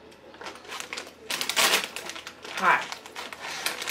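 A crisp bag crinkles and rustles.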